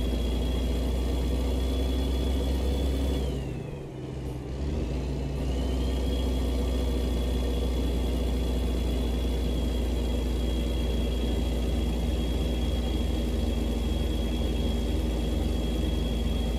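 A truck engine drones steadily while driving, briefly dipping and then rising again.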